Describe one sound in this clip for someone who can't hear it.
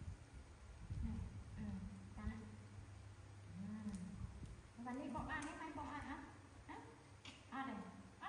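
A woman speaks softly and gently, close by.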